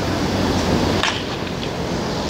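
A bat cracks against a ball once.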